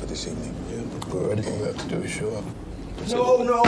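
A man asks a question in a low voice.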